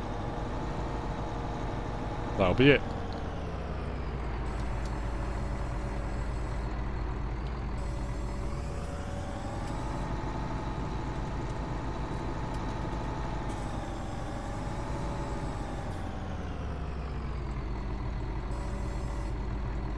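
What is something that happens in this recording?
A tractor engine hums steadily, rising and falling in pitch as it drives.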